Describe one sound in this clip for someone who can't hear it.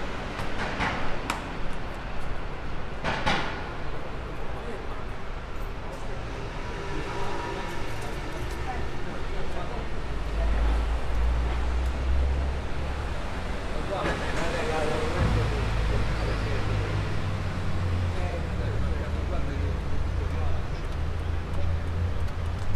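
Traffic rumbles along a city street in the distance.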